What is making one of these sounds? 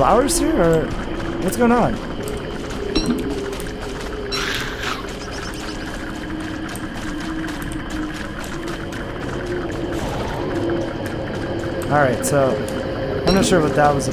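Footsteps patter quickly across the ground.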